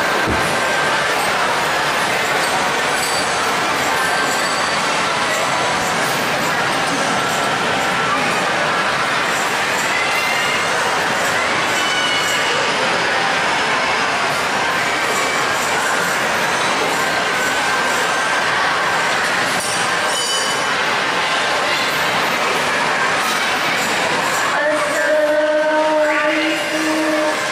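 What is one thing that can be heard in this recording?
Young men chant together in loud, hearty song.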